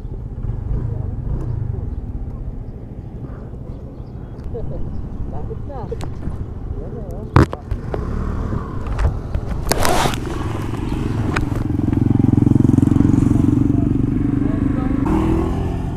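A motorcycle engine idles with a low rumble nearby.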